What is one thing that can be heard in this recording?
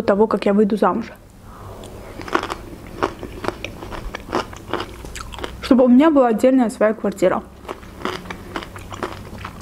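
A young woman chews food with crisp, wet mouth sounds.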